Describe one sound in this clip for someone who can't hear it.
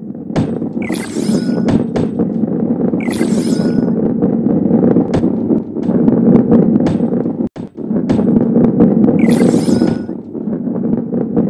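A ball rolls along a track with a steady low rumble.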